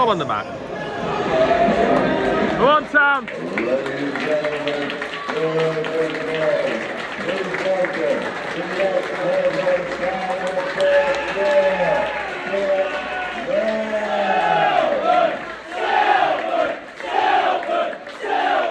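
A crowd of men sings and chants loudly nearby, outdoors.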